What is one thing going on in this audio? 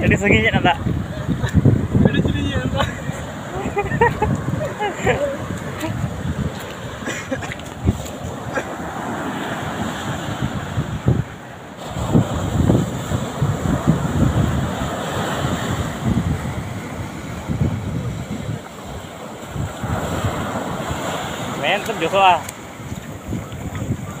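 Waves break and wash up onto the shore.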